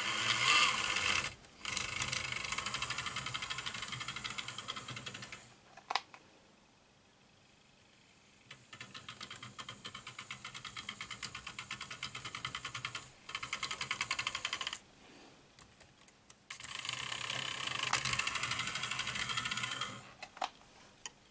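A toy train clatters rapidly along a track.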